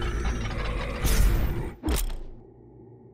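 A short whooshing sound effect rushes past.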